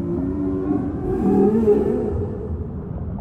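A whale exhales a spout with a breathy whoosh.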